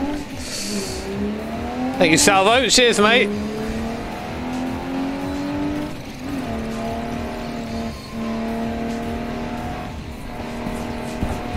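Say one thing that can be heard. A car engine hums steadily and rises in pitch as it speeds up, dropping with each gear change.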